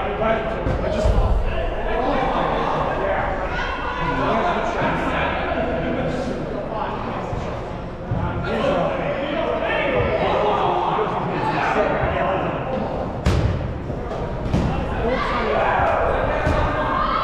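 Men and women shout and call out across a large echoing indoor hall.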